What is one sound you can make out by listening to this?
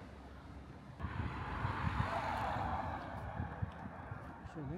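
A car passes by on the street.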